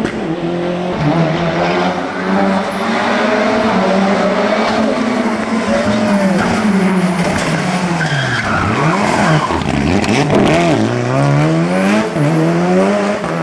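A turbocharged four-cylinder rally car revs hard, shifting gears as it climbs uphill.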